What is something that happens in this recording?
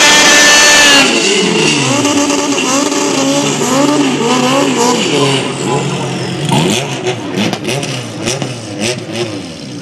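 A car engine roars with shifting pitch and slowly fades.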